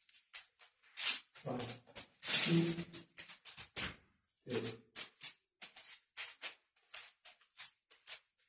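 Fighting sticks swish through the air.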